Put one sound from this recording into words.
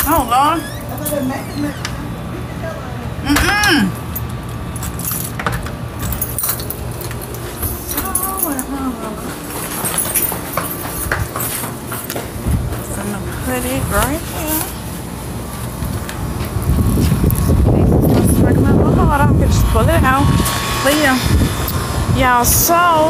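A young woman talks casually, close to the microphone.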